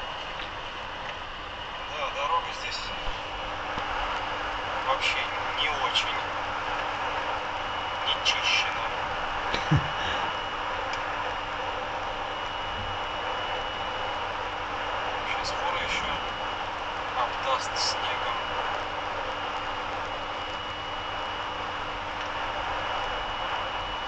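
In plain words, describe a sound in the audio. A car's tyres roar steadily on a snowy road.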